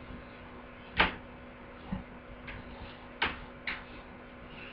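Soft knocks and rustles sound close to the microphone.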